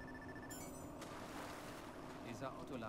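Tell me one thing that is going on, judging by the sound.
Water splashes as a body plunges in.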